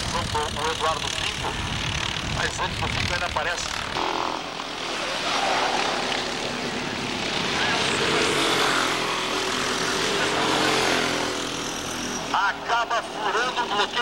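Go-kart engines buzz and whine loudly as karts race past.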